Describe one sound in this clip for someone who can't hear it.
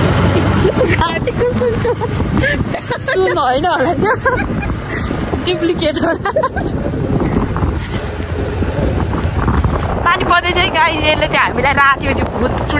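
Young women talk and laugh loudly close by.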